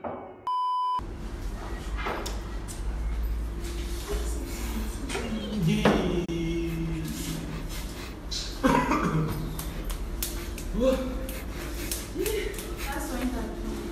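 A young man gasps and groans loudly.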